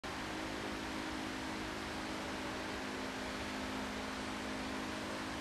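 A piano plays.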